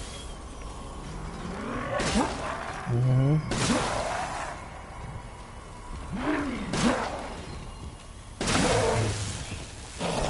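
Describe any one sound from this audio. Creatures groan and snarl close by.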